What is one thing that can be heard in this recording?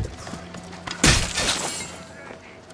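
A blade strikes with a sharp thud.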